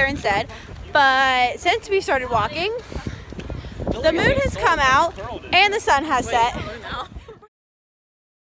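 A young woman talks excitedly and close up.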